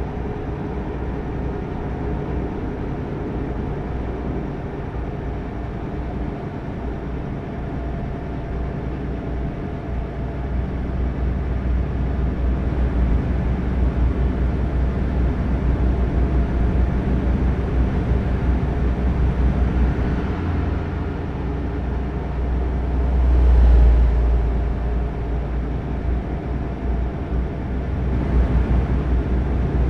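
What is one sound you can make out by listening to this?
A truck engine hums steadily as it drives along a highway.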